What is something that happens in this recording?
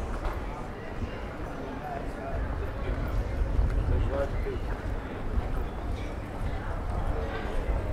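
Footsteps patter on paving stones.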